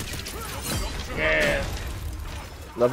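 A chime rings out.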